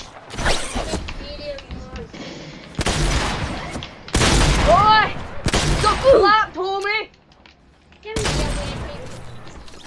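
Shotguns fire in loud, booming blasts.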